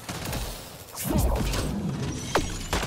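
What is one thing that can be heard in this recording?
A sharp energy blast crackles and booms.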